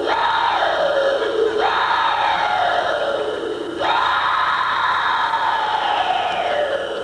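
A woman sings into a microphone with long, gliding notes that fall in pitch.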